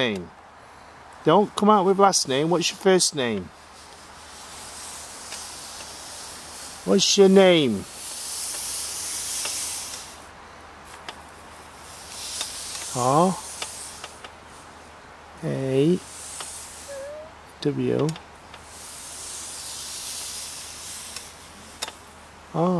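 A wooden pointer slides and scrapes softly across a board.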